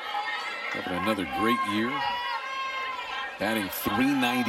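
A large crowd chatters and cheers in the stands.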